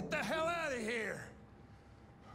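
An older man shouts angrily, close by.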